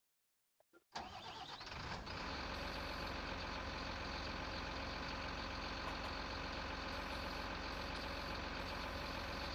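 A heavy diesel engine idles steadily.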